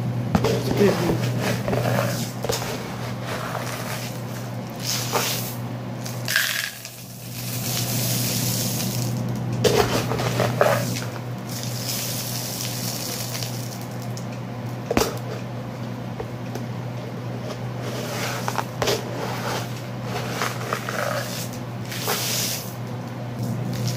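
Plastic cups knock and clatter against a table.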